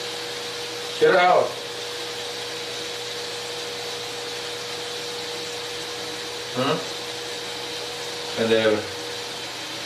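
A cat meows loudly close by.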